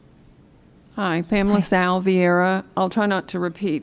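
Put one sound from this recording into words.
A woman speaks into a microphone, heard over a loudspeaker in a large room.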